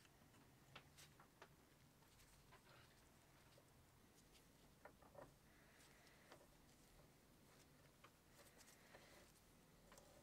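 A metal screw scrapes and clicks as it is threaded in.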